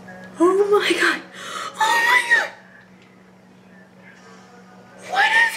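A teenage girl speaks excitedly close by.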